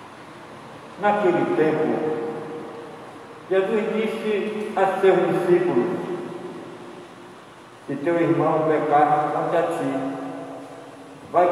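A man speaks slowly and solemnly through a microphone and loudspeakers in a large echoing hall.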